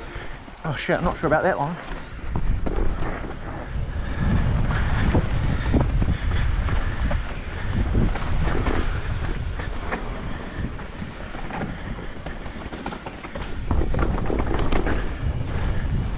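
Wind rushes past steadily outdoors.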